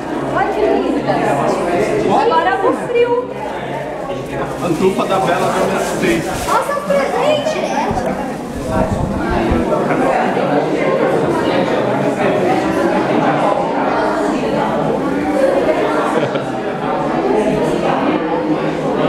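People talk and chatter close by, in a room with some echo.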